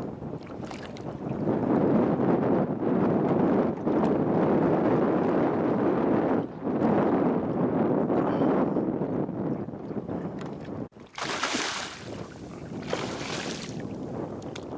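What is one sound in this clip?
A hooked fish splashes and thrashes at the surface.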